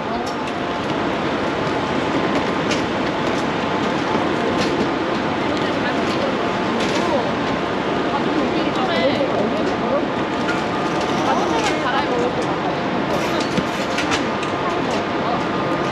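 A bus engine idles close by.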